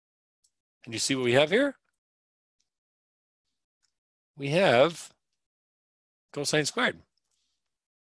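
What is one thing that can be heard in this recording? A man speaks calmly into a close microphone in short phrases.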